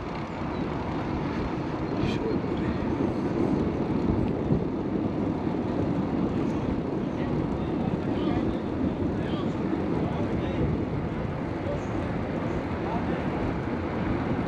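Wind rushes and buffets steadily outdoors.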